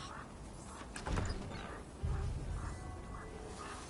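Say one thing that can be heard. A wooden chest lid creaks open with a thud.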